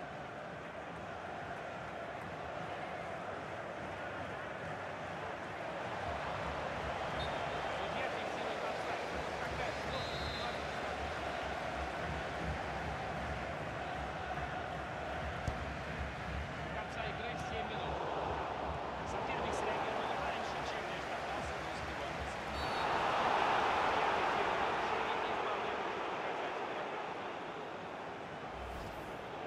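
A large crowd roars steadily and swells loudly for a while.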